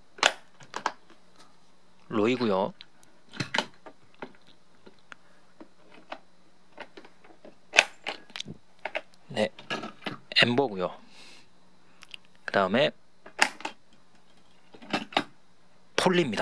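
Small plastic toy cars click softly as they are set down on a hard surface.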